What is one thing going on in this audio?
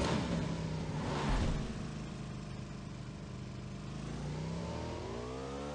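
A motorcycle engine hums steadily and revs up near the end.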